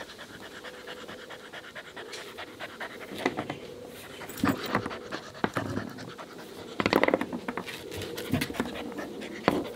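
A puppy chews and gnaws on a stick.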